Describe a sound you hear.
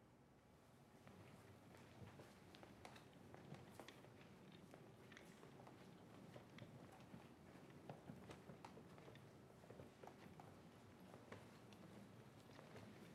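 Footsteps click on a hard floor.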